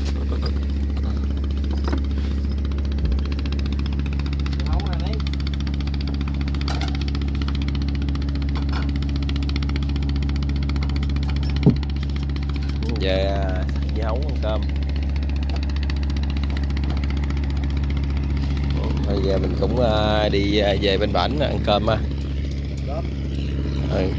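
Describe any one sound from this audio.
A boat engine hums steadily nearby.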